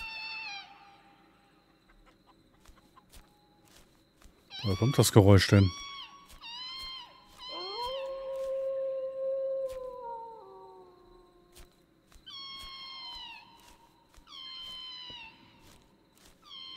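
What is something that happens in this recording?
Footsteps tread through grass at a steady walking pace.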